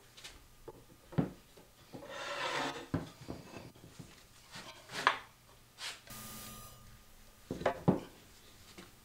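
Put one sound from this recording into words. A metal clamp rattles and clicks as it is loosened and lifted off.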